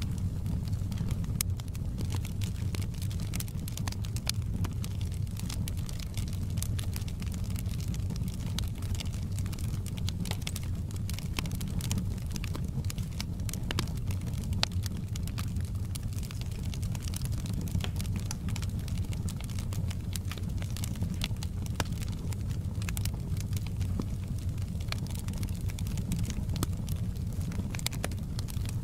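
Flames roar low and steadily.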